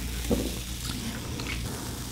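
Beer pours and fizzes into a glass.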